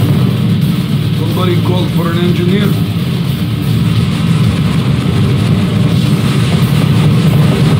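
Jet engines hum steadily nearby.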